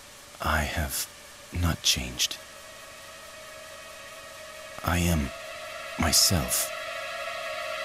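A man speaks calmly and coldly.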